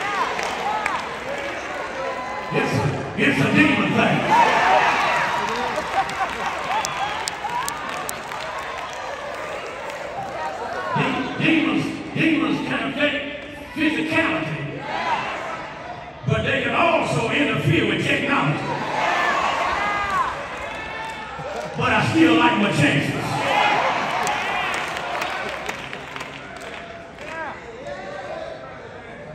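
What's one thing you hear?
An adult man preaches with animation through loudspeakers in a large echoing hall.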